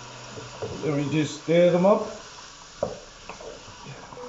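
A spoon scrapes and clinks against a pot while stirring.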